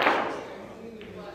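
A cue strikes a pool ball.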